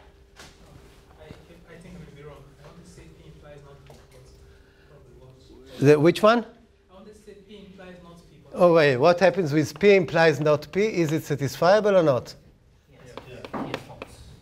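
A middle-aged man lectures with animation.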